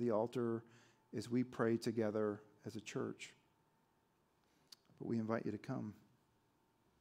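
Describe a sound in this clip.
A man speaks calmly through a microphone in a large echoing room, with long pauses.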